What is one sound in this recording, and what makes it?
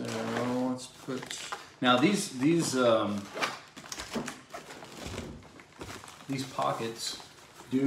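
A fabric bag rustles and its flaps thump softly.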